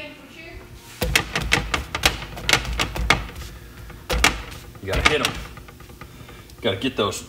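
Metal tongs clack against a pan.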